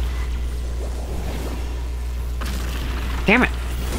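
Magical sparkles shimmer and chime in a video game.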